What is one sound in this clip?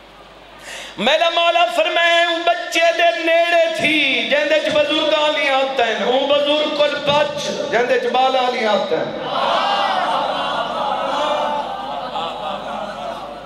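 A man chants loudly and with passion into a microphone, heard through loudspeakers.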